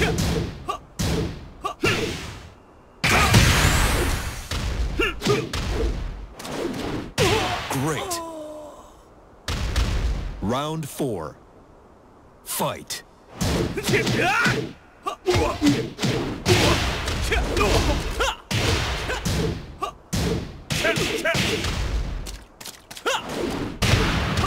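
Punches and kicks land with sharp, heavy thuds.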